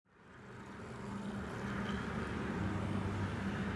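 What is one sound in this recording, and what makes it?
A magical energy beam roars and crackles against a crystal.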